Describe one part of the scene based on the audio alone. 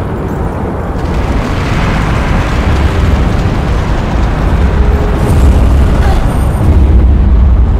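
Lava rumbles with a deep, steady roar.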